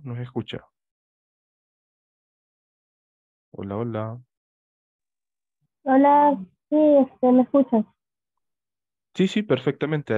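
People speak briefly in turns over an online call, with pauses between.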